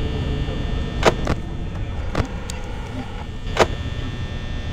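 Static hisses and crackles from a monitor.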